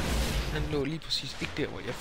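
A gun fires with a bright blast.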